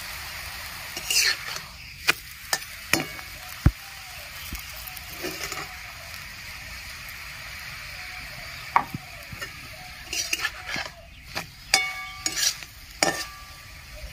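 A metal spatula scrapes and taps against a pan.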